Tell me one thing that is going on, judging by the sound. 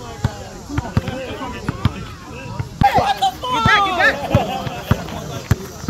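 A basketball bounces repeatedly on an outdoor court.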